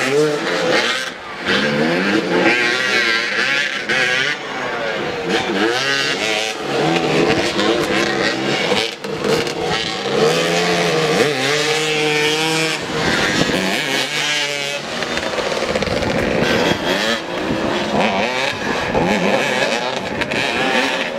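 Motorcycle engines rev and buzz outdoors.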